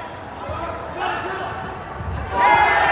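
A volleyball is spiked with a sharp smack in a large echoing gym.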